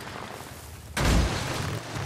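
Water splashes under a motorcycle's wheels.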